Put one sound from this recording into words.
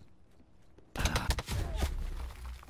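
Gunshots crack loudly in a quick burst.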